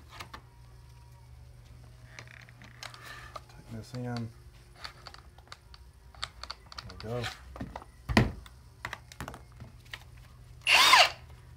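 Metal parts click and clack as a tool is handled.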